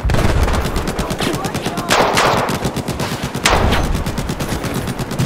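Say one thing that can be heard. A rifle fires in rapid bursts, close by.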